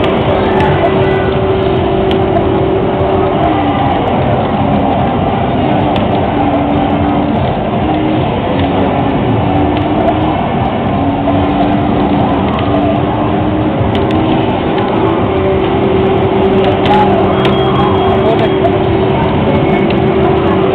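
Loud arcade game music plays through a loudspeaker.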